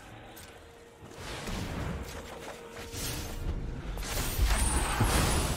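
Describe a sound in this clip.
A card game plays whooshing, chiming effects.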